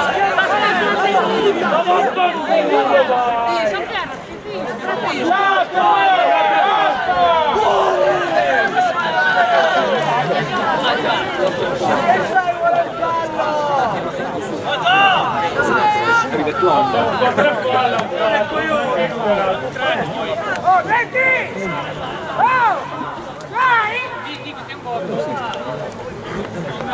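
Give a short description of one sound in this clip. Several young men shout and call out across an open field.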